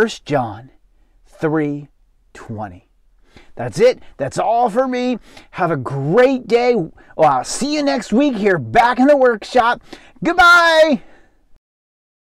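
A man speaks with animation close to a microphone, ending with an excited exclamation.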